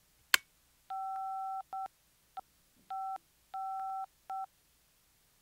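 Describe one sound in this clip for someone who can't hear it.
Phone keypad tones beep as a number is dialled.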